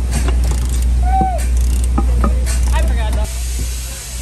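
A ratchet wrench clicks as it turns bolts on a wheel.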